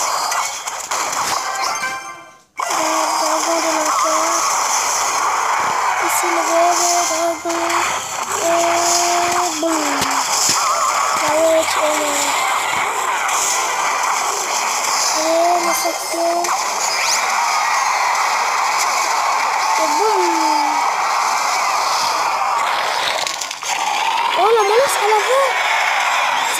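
Game music plays steadily with short melodic notes.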